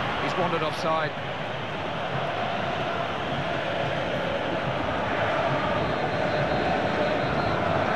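A large stadium crowd roars and cheers.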